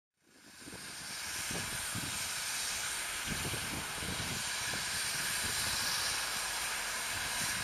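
A steam locomotive chuffs in the distance.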